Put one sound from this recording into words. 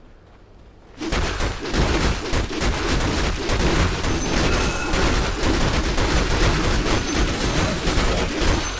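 Fighting sound effects from a video game clash and crackle loudly and without a break.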